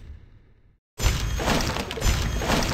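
Coins clink and jingle.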